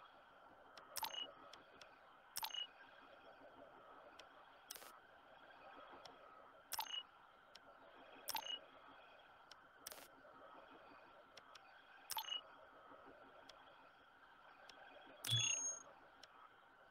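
Menu interface sounds click and chime as selections are made.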